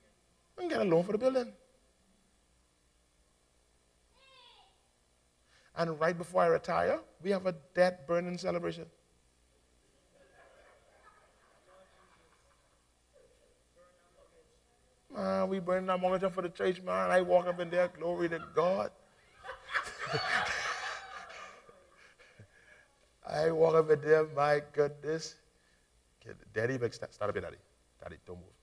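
A man preaches with animation through a microphone, in short bursts with pauses.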